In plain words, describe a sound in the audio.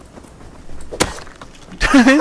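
An axe hits a body with a dull thud.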